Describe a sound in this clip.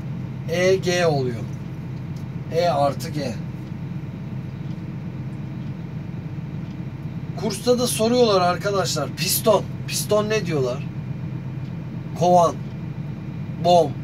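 A young man speaks loudly and with animation close by.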